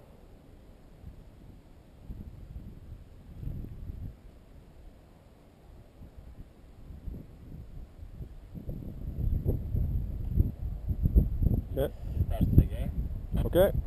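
A paraglider canopy rustles and flaps in the wind.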